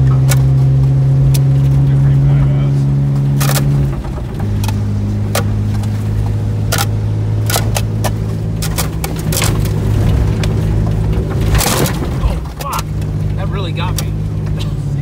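Branches scrape and snap against the side of a car.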